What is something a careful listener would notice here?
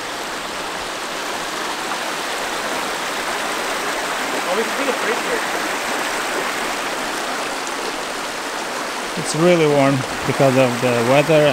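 A stream of meltwater rushes and gurgles over rocks.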